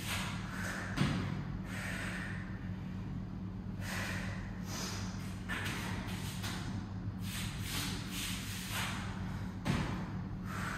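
Feet thump softly on a foam floor mat.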